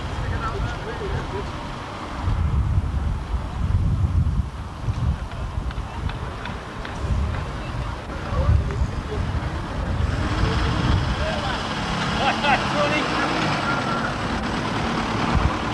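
An old car engine chugs slowly past, close by.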